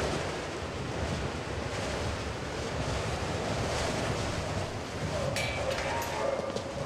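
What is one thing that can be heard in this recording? Strong wind roars steadily outdoors in a blizzard.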